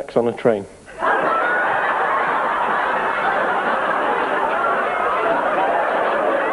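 A woman laughs heartily.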